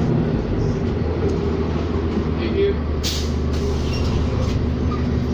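A bus engine rumbles steadily from inside the vehicle as it moves.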